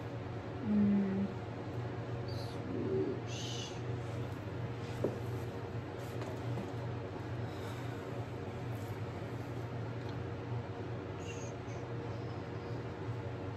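A palette knife scrapes lightly across a painted surface.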